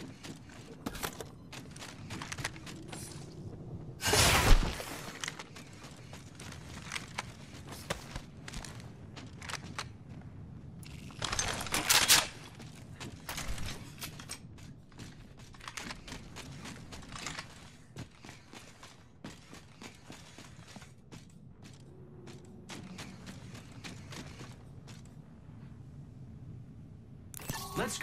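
Footsteps clatter quickly on hard floors and metal.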